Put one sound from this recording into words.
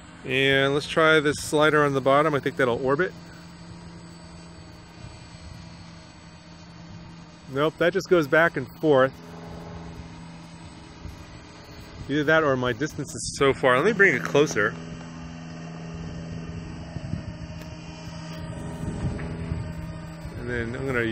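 A small drone's propellers hum steadily.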